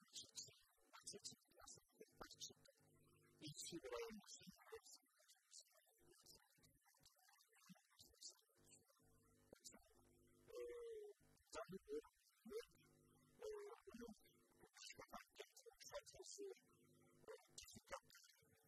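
An elderly man speaks with animation into a close microphone.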